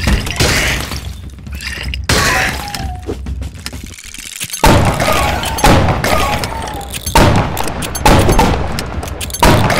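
A gun fires loud, sudden blasts again and again.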